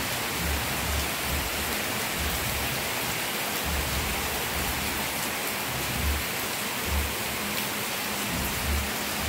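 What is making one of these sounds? Steady rain falls and patters on paving outdoors.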